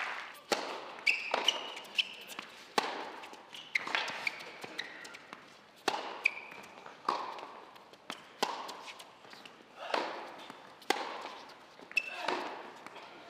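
A tennis ball is bounced repeatedly on a hard court.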